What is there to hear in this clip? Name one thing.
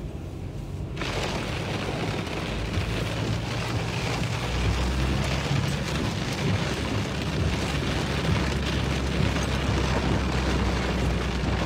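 Strong wind roars and gusts around a car.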